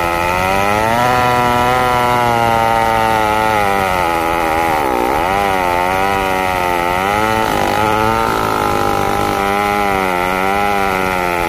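A chainsaw engine roars loudly close by, its pitch dipping and rising as it bites into wood.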